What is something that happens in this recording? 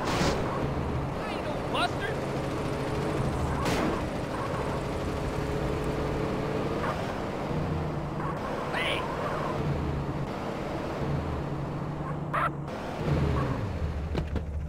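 A car engine hums and revs as a car drives along.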